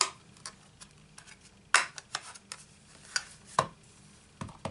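A plastic case clicks and knocks as it is handled.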